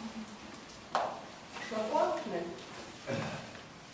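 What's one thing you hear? A woman talks quietly.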